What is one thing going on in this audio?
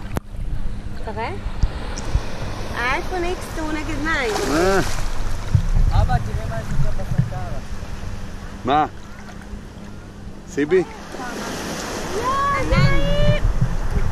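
Gentle waves lap and splash around the swimmers.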